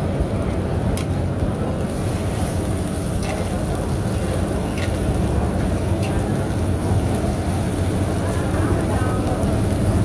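A metal spatula scrapes and clinks across an iron pan.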